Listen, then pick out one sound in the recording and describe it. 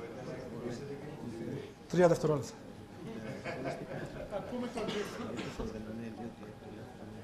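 A man speaks calmly into a microphone in a large room.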